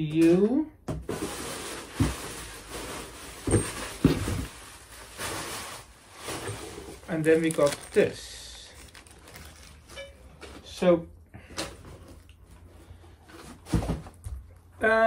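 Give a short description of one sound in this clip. A cardboard box flaps and thumps.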